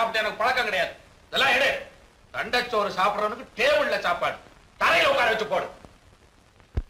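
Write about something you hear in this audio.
A man talks loudly and excitedly, close by.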